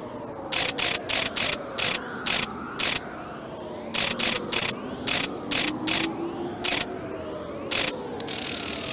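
Letter wheels click sharply as they turn, one burst after another.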